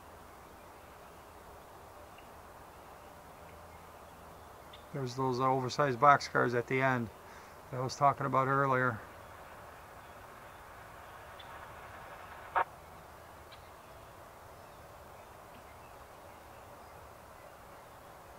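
A freight train rumbles along the tracks in the distance.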